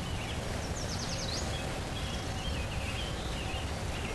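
Waves wash softly onto a beach.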